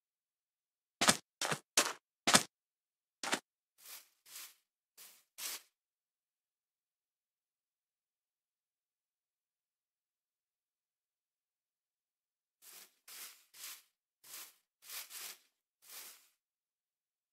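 Footsteps crunch on sand and then on grass in short bursts.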